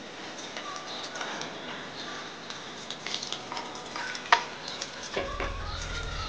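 Dishes clink and scrape in a sink.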